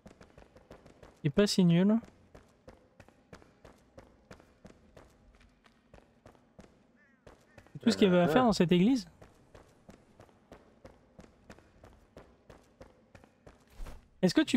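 Footsteps patter quickly and softly on a stone floor.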